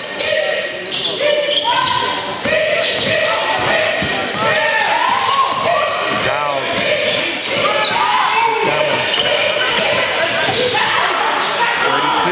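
Sneakers squeak sharply on a gym floor in an echoing hall.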